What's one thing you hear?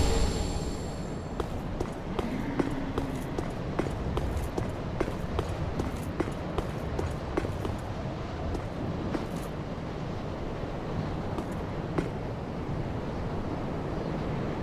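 Armoured footsteps clank on stone tiles.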